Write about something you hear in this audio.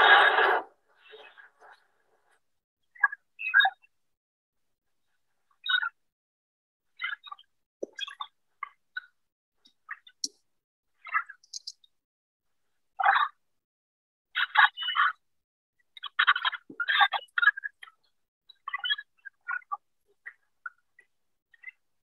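An older man speaks calmly over an online call, with pauses.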